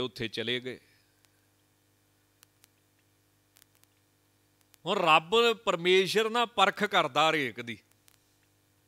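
A man sings in a chanting voice through a microphone.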